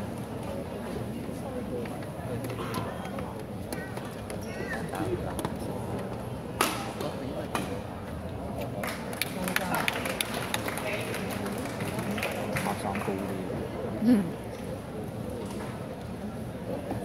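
A shuttlecock is struck sharply with rackets, back and forth.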